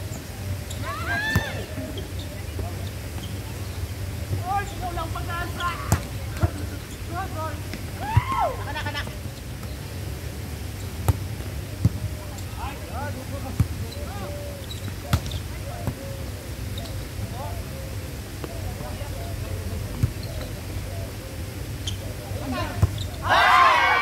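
Young players call out and shout to each other outdoors.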